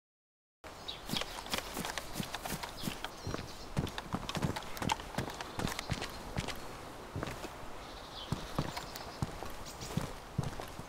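Footsteps thud on hard concrete stairs.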